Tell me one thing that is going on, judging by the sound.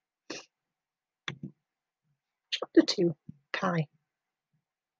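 A woman reads aloud close to a microphone.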